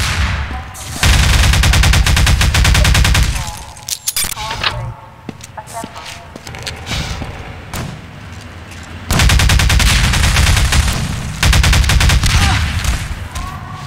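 An energy gun fires rapid crackling, buzzing bursts.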